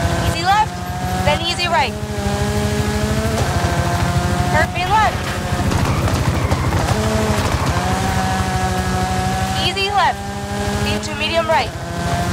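A rally car engine roars at high revs, rising and dropping with each gear change.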